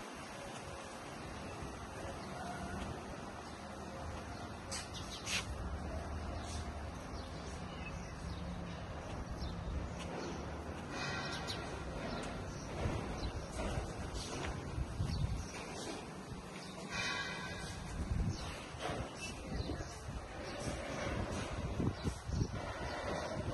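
Footsteps walk slowly over stone paving outdoors.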